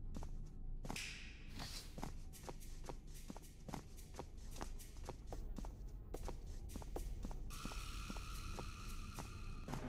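Footsteps thud on a creaking wooden floor.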